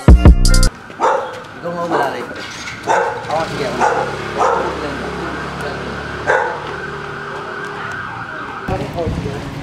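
A young man talks outdoors.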